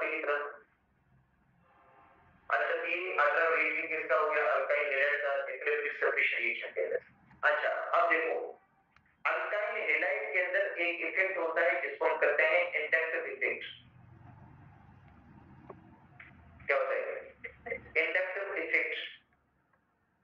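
A middle-aged man lectures calmly into a close microphone.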